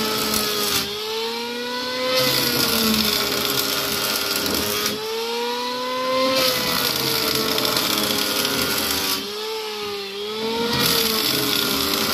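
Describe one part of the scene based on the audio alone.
An electric hand planer whines loudly as it shaves wood, its pitch dipping and rising with each pass.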